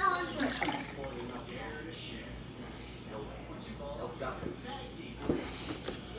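Milk pours and splashes into a glass.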